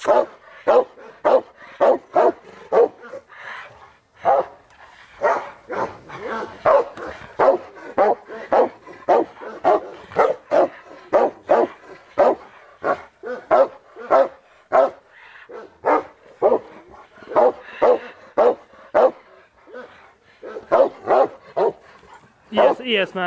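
A dog growls and snarls loudly in rapid bursts.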